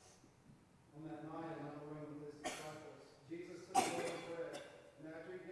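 A man speaks calmly and slowly through a microphone in a large echoing hall.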